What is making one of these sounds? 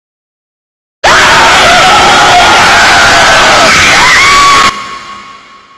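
A woman screams loudly and shrilly.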